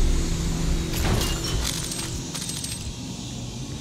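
Metal items click and clatter as they are picked up.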